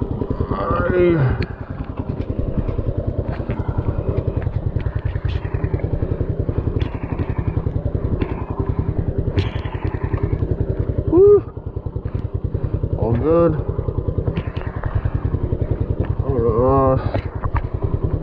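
A motorcycle engine revs up briefly several times and falls back.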